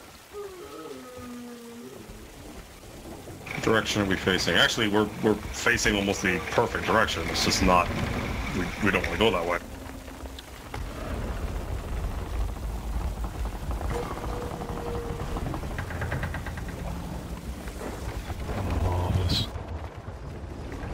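Waves wash around a wooden ship at sea.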